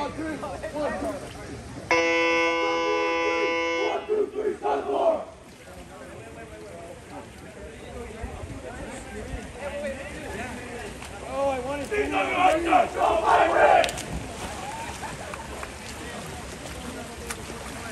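A crowd of young men and women chatter and call out nearby, outdoors.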